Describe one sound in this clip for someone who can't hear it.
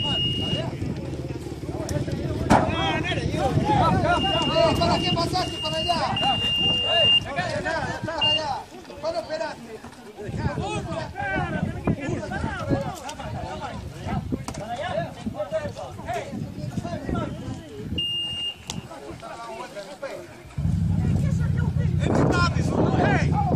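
A crowd of men talk and call out excitedly outdoors.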